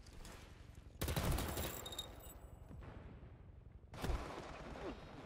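A rifle fires short bursts of shots.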